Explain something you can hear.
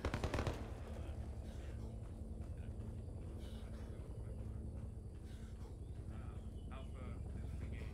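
Footsteps tread steadily on dirt ground.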